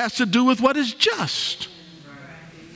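A man speaks emphatically through a microphone.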